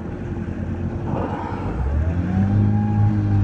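A whale blows out a loud, breathy spout close by.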